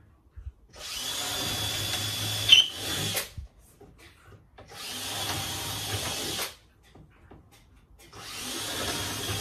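A power sander whirs loudly in short bursts.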